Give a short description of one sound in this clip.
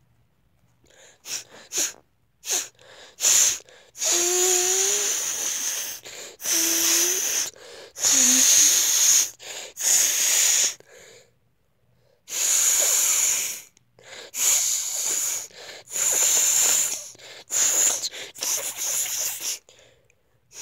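A young boy gurgles and sputters wetly close by.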